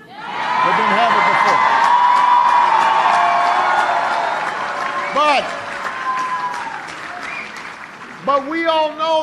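Loud applause fills the room.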